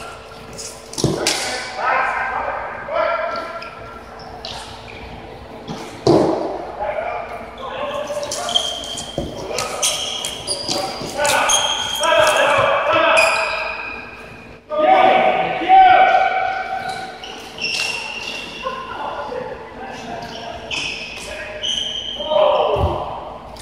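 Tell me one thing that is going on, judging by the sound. Plastic sticks clack against a ball.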